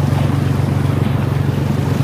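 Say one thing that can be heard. A motorbike engine hums as it wades through water.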